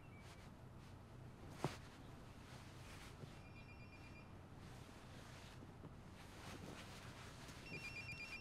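Bed covers rustle softly as a woman gets out of bed.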